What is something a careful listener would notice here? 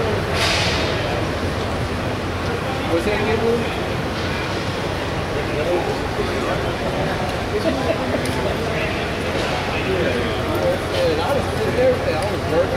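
A crowd of men and women chatter around.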